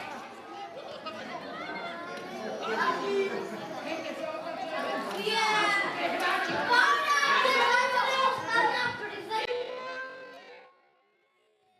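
Young players shout excitedly across an open field.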